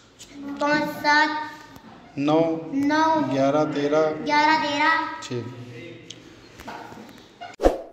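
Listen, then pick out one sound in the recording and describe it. A young boy speaks nearby, a little hesitantly.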